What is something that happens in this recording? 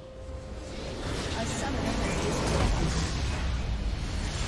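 A large magical explosion booms and rumbles.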